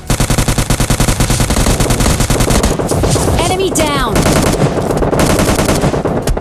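A gun fires in rapid, steady bursts.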